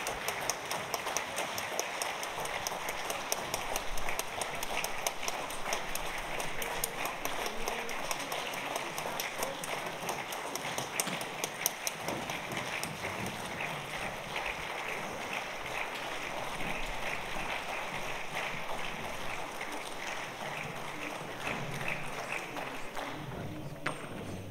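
Many footsteps shuffle across a wooden stage in a large echoing hall.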